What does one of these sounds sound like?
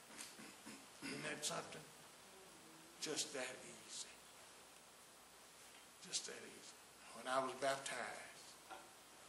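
An elderly man speaks slowly and with pauses into a microphone in an echoing hall.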